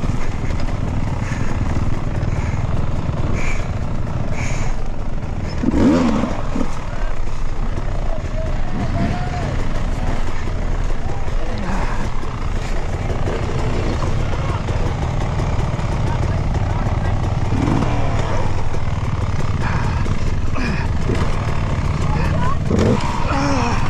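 A dirt bike engine idles and revs up close.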